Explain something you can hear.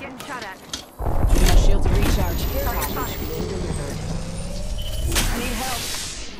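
A device charges up with a rising electric hum.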